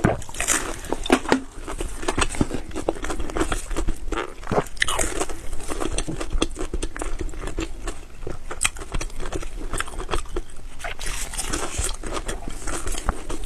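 A woman chews food loudly and wetly close to a microphone.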